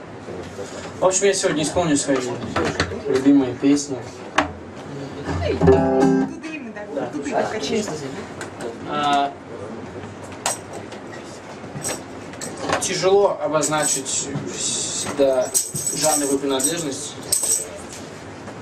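A young man sings into a microphone through a loudspeaker.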